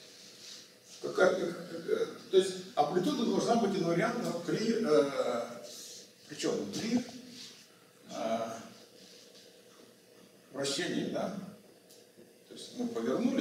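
An elderly man lectures with animation.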